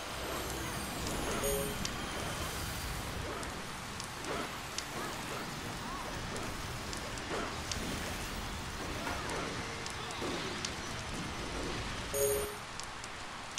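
Spell effects crackle and clash in a game battle.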